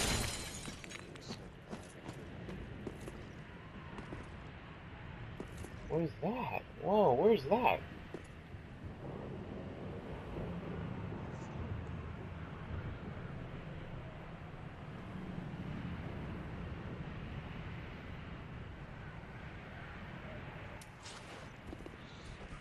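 Armoured footsteps clank and crunch on stone.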